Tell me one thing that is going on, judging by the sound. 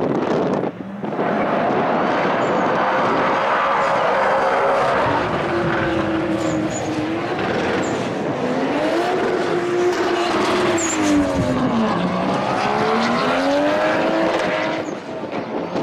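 A car engine roars loudly as it speeds away down a drag strip.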